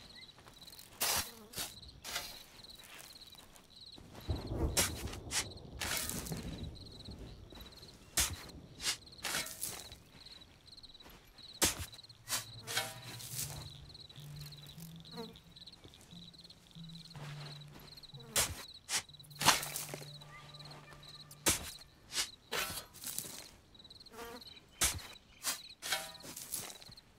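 A shovel digs into soft dirt with repeated scraping thuds.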